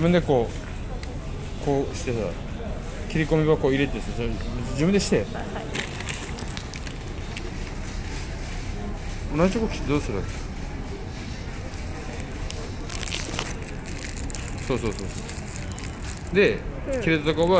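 Foil wrapper crinkles and rustles as fingers handle it.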